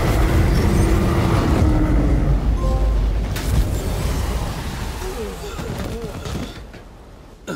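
A loud explosion rumbles and debris crashes down.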